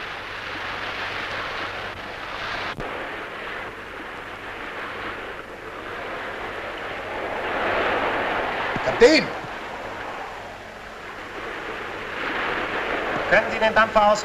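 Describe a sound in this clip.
Waves wash and roll on open sea.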